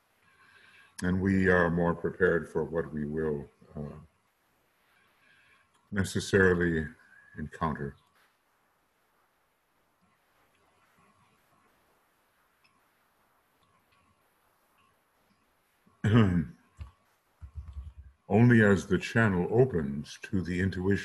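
An elderly man speaks calmly into a microphone, in bursts with long pauses.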